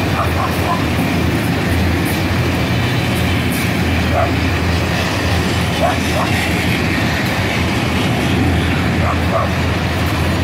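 Metal wagons squeal and screech faintly as they roll by.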